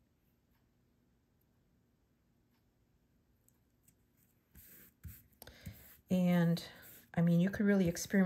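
Paper rustles softly as hands press it flat.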